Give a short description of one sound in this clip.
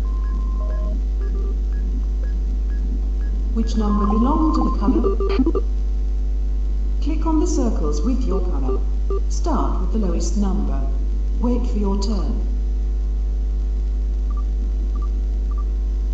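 Short electronic beeps chime now and then.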